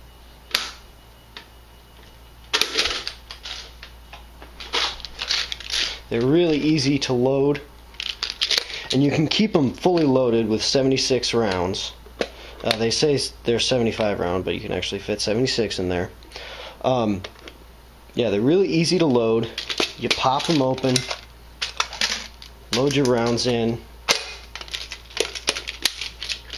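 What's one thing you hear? Plastic parts click and rattle in a man's hands.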